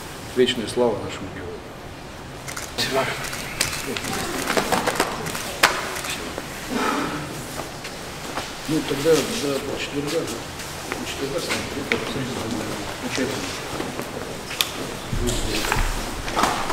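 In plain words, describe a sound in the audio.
Several men talk and greet each other nearby.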